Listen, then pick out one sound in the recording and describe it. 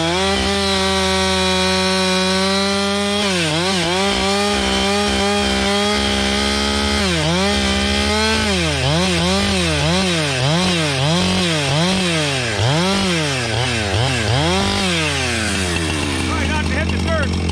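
A chainsaw idles, then revs up and down repeatedly while cutting through wood.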